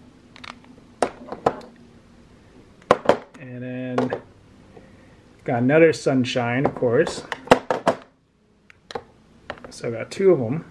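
Hard plastic cases click and clack against each other.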